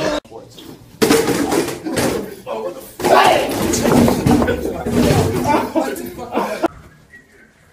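A young man yells with excitement.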